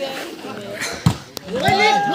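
A volleyball is struck hard with a sharp slap.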